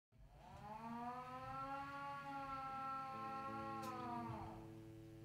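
Musical instruments play a long, held chord in a large hall.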